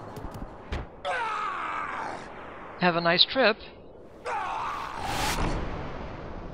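A large creature lets out loud, rising screeches.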